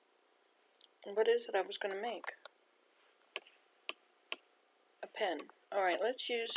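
An elderly woman talks casually into a computer microphone.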